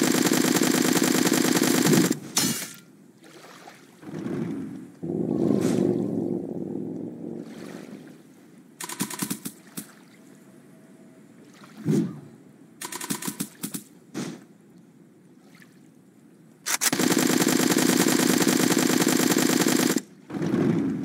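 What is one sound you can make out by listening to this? A laser beam buzzes loudly and steadily.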